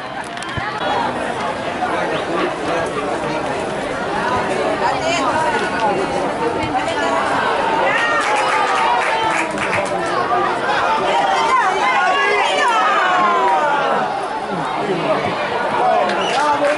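A crowd of adult spectators chatters loudly close by.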